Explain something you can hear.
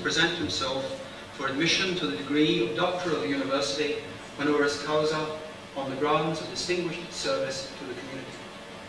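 An elderly man speaks calmly through a microphone in an echoing hall.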